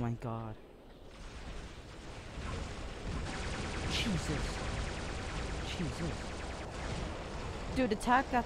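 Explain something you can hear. Game weapons fire and explode.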